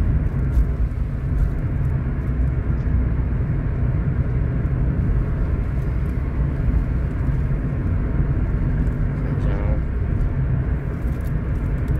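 Raindrops patter on a car window.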